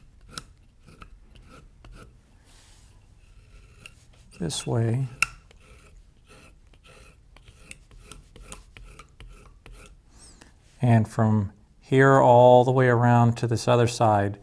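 A small carving blade scrapes and clicks as it chips away at soft material.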